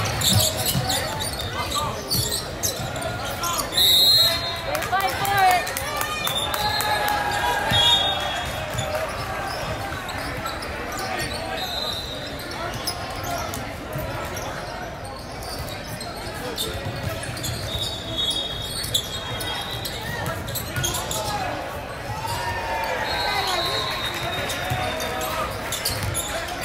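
A crowd chatters steadily in a large echoing gym.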